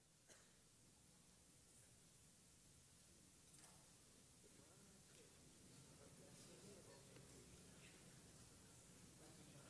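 A crowd of men and women murmurs quietly in a large echoing hall.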